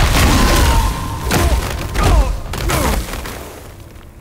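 Chunks of ice crash and tumble down.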